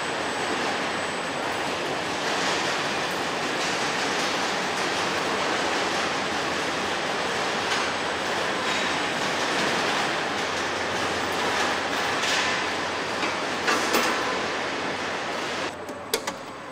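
A steady din of machinery fills a large hall.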